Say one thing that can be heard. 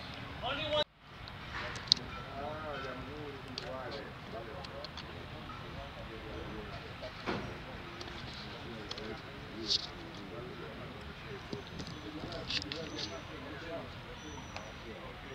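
A man talks calmly to a group outdoors.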